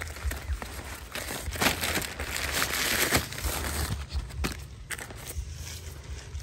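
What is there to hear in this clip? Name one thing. Paper bags rustle and crinkle as a hand rummages through them.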